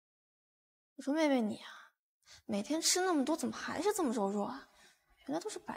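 A young woman speaks sharply and scolds, close by.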